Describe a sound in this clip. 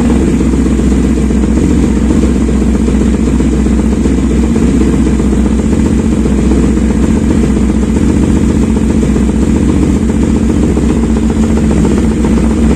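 A motorcycle engine idles close by with a steady, throbbing rumble.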